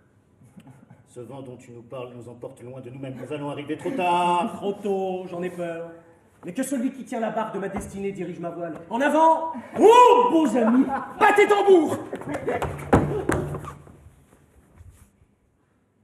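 Several men sing and shout loudly together in a large echoing hall.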